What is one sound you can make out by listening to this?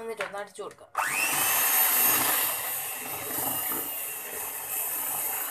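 An electric hand mixer starts up and whirs loudly, beating a thick batter.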